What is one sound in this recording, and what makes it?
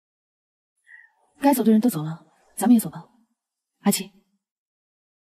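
A young woman speaks coldly and calmly, close by.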